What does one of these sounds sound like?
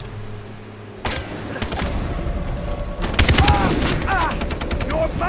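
Gunshots crack rapidly close by.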